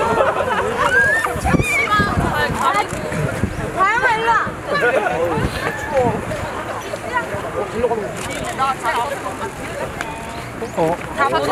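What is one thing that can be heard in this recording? Several young women chatter and laugh excitedly nearby, outdoors.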